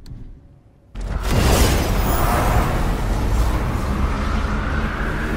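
A loud rushing roar of swirling energy fills the air.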